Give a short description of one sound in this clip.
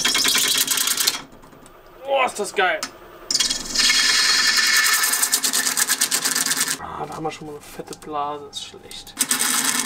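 A wood lathe spins with a steady whir.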